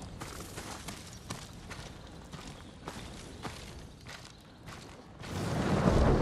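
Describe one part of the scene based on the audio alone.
Footsteps crunch on snow at a brisk pace.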